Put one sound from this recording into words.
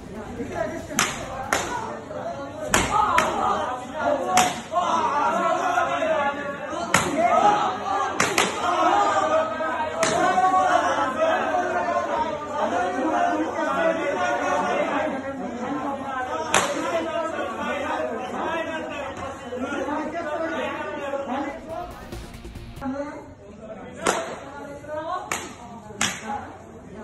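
Sticks strike people in sharp, repeated blows.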